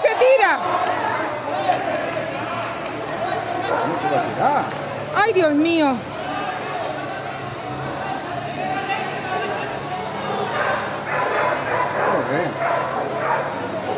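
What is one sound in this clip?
Men and women shout and scream in alarm outdoors, some of them close by.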